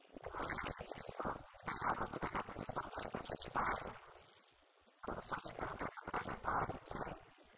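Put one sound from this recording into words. A woman speaks with animation into a microphone, heard through a loudspeaker.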